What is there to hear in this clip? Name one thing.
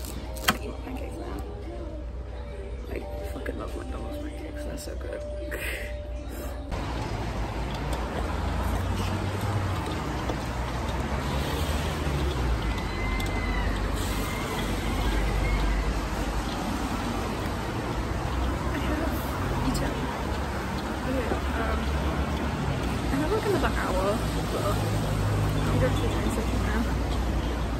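A young woman talks casually, close to the microphone.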